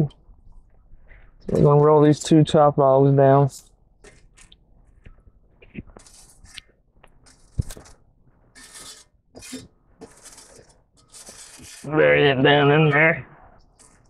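A metal shovel scrapes and clanks against embers and ash.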